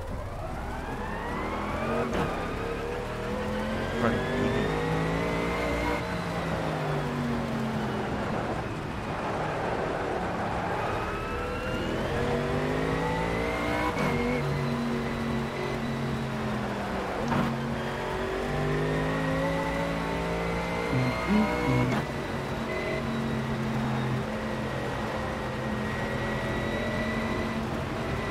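A racing car engine revs hard, rising and falling as gears shift.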